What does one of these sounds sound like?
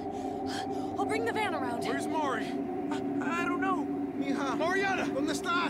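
A young man speaks tensely.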